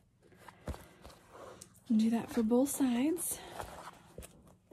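A young woman talks animatedly close to the microphone.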